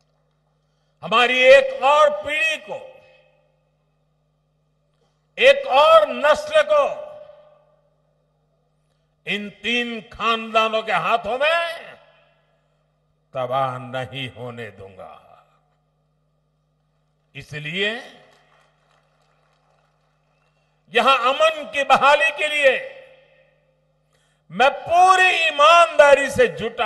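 An elderly man speaks forcefully into a microphone over loudspeakers, in bursts with pauses.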